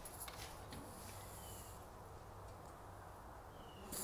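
A metal panel door clanks open.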